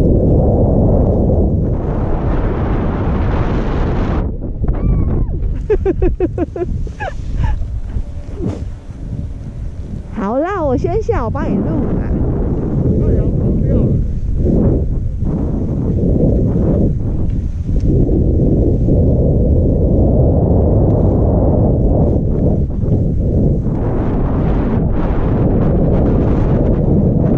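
Skis scrape and hiss over snow.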